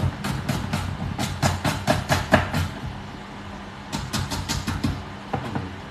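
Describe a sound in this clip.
A knife chops quickly on a cutting board.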